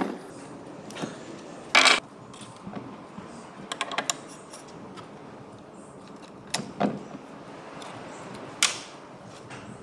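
Metal tools clink and clatter against engine parts.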